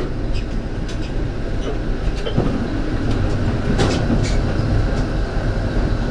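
Another tram rolls past close by in the opposite direction.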